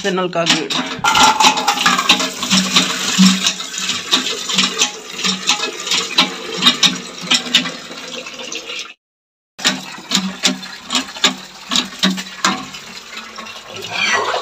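Water pours from a pipe and splashes into a metal bucket.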